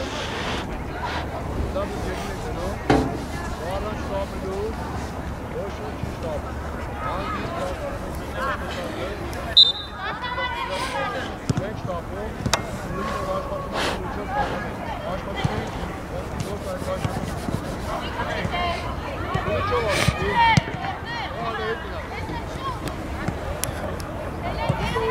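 Young women shout and call to each other across an open field, heard from a distance.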